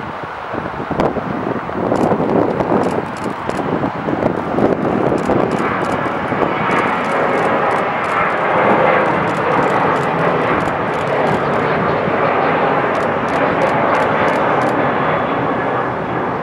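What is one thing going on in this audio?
A jet airliner roars loudly as it takes off and climbs away.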